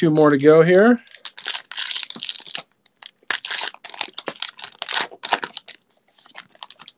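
A plastic wrapper crinkles and tears as a pack is opened.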